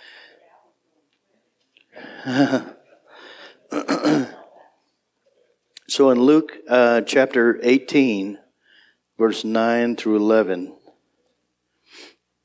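An older man speaks with animation through a microphone.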